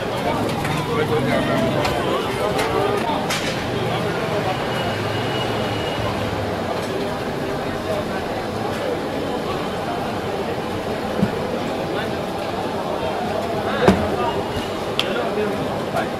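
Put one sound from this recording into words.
A crowd of men chatters loudly all around outdoors.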